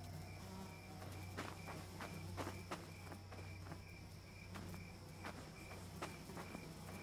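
Footsteps crunch steadily over a forest floor.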